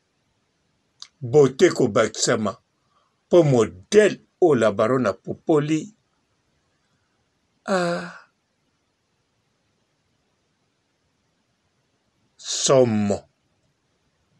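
A man speaks close by in short bursts.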